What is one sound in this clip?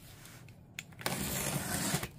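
A blade slices through cardboard tape.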